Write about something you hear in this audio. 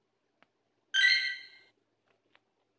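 A game's countdown timer ends with a bright chime.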